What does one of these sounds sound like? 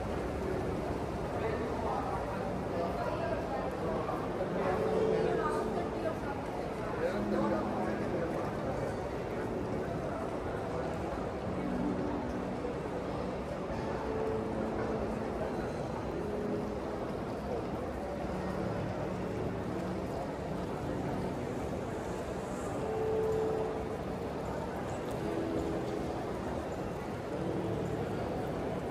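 A crowd murmurs faintly throughout a large echoing hall.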